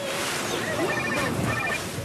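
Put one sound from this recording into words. Waves break and wash in the surf.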